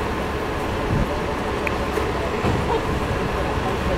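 A bus's folding doors swing shut.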